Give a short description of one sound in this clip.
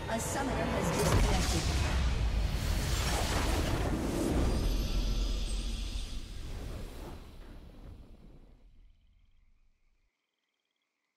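A triumphant victory fanfare swells, then slowly fades away.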